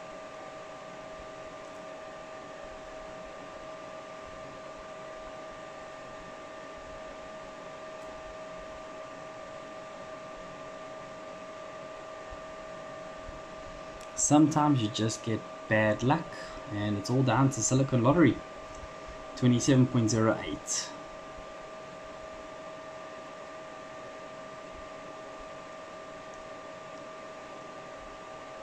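Computer fans whir with a steady, high-pitched hum.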